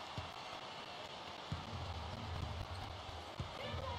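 A basketball thumps as it is dribbled on a wooden floor.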